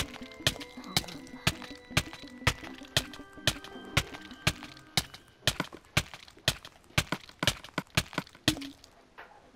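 Sharp hits land at a steady beat, about twice a second.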